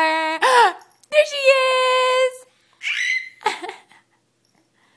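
A baby girl squeals with delight close by.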